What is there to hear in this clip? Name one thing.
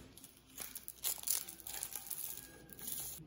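A paper straw wrapper rustles and crinkles close by.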